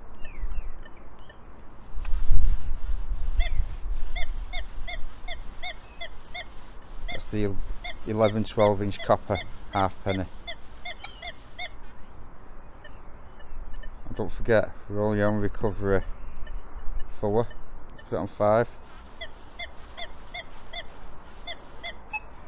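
A metal detector beeps steadily in short, quick pulses.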